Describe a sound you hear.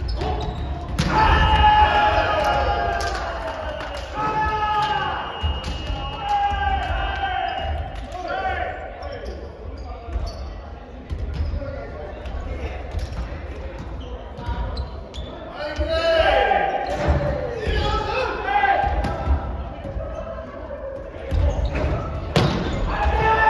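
A volleyball is struck by hands.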